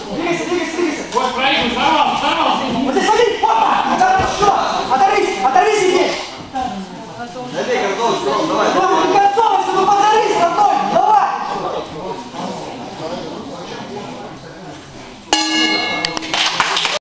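A crowd of young men shouts and cheers with animation in an echoing hall.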